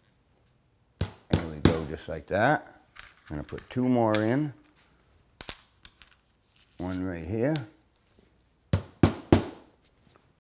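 A hammer taps nails into wood.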